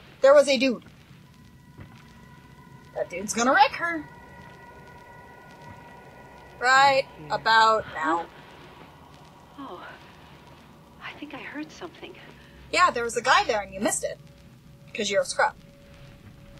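A young woman talks in short bursts close to a microphone.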